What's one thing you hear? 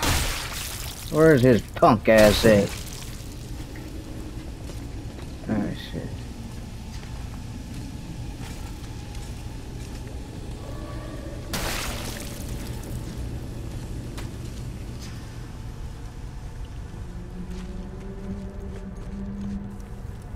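Footsteps crunch over rough ground.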